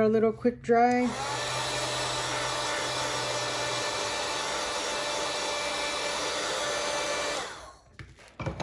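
A heat tool blows with a steady whir.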